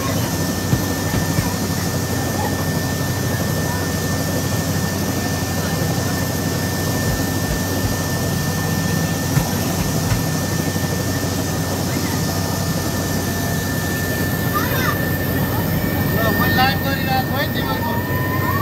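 An aircraft engine drones loudly and steadily.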